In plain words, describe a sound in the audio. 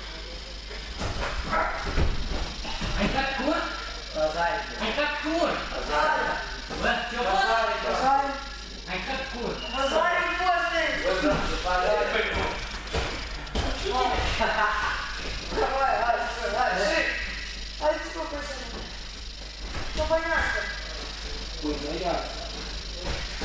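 A man talks with animation in an echoing hall.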